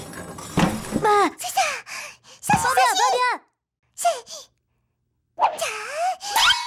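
A cartoon creature speaks in a high, squeaky, lively voice.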